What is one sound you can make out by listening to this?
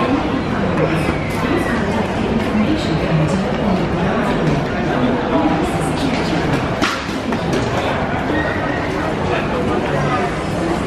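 A crowd murmurs and chatters in a busy echoing hall.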